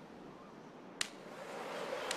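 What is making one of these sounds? A golf ball thuds onto the grass.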